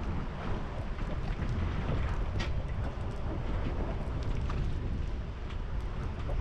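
Wind blusters outdoors.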